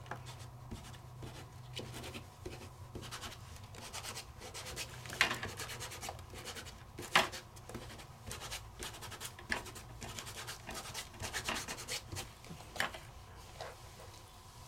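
A foam applicator dabs and rubs against paper.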